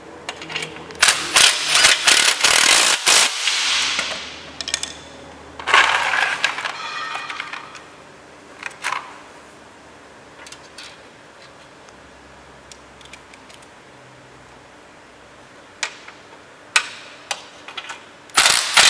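A cordless drill whirs in short bursts, driving in a screw.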